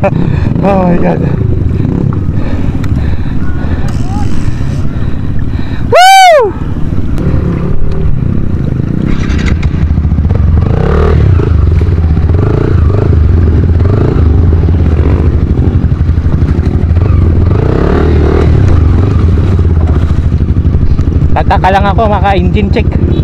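A motorcycle engine idles and revs close by.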